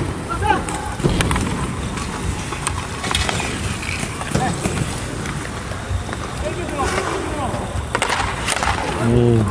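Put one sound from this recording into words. Hockey sticks clack against a ball and each other now and then.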